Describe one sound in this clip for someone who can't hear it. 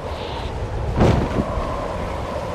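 A parachute snaps open with a loud whoosh.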